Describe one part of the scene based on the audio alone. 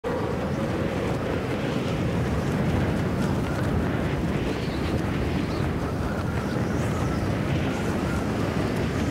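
Wind rushes steadily past during a skydive.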